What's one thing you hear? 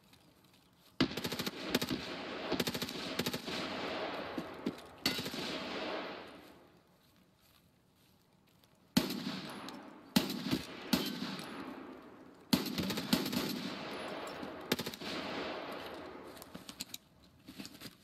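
Pistol shots fire and echo loudly outdoors.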